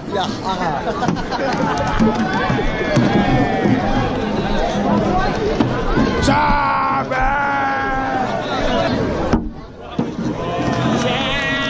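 A crowd of men chants and shouts loudly outdoors.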